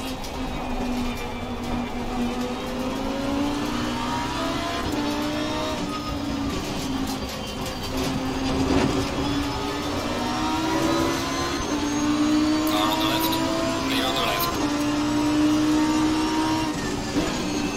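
A race car engine roars loudly, rising in pitch and dropping at each gear change.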